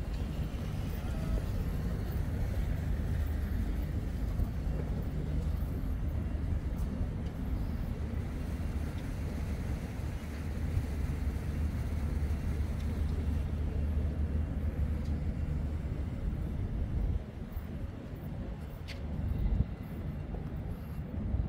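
Footsteps tap on a paved walkway nearby.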